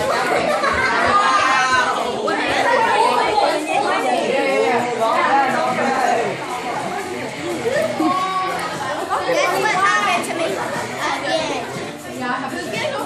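A crowd of children and adults chatter and call out excitedly close by.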